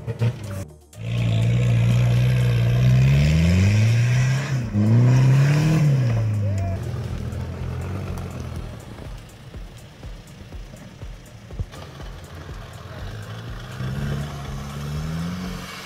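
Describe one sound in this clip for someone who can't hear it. A second off-road engine roars loudly, then settles to a low rumble.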